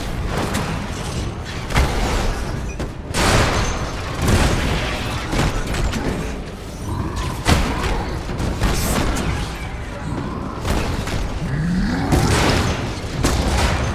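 Heavy punches land with loud crunching thuds.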